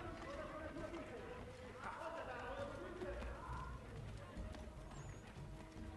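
Footsteps thud quickly across a roof.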